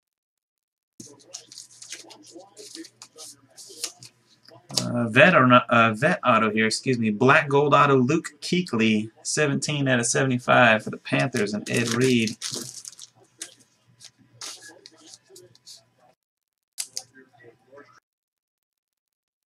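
Card packaging rustles and crinkles in hands.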